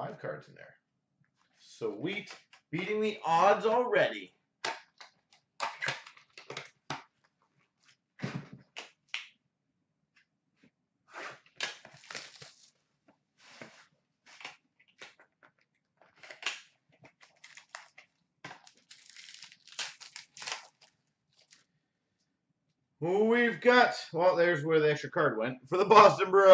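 Trading cards rustle and flick as hands sort through them.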